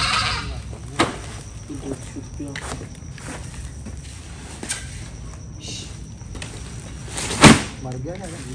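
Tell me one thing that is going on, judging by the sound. Heavy sacks thump and rustle as they are lifted and set down.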